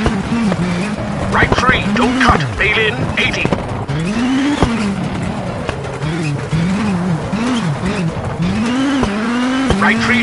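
A rally car engine revs hard, rising and falling in pitch with each gear change.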